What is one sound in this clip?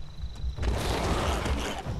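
A wild creature growls and snarls close by.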